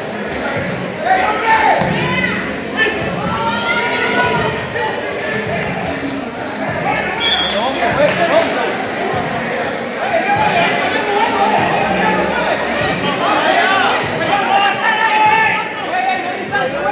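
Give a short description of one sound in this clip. Men shout and call out across the court.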